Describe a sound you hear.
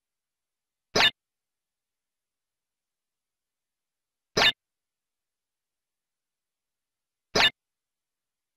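A game menu gives short, sharp beeps.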